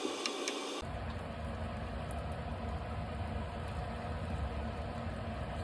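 Eggs sizzle in a hot pan.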